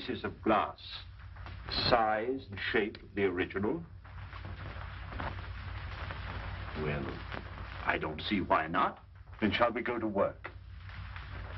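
Two men talk in turn, with animation, through a crackly old recording.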